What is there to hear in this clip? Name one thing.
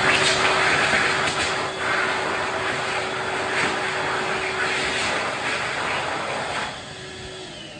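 A hand dryer blows loudly with a strong roar of air, then stops.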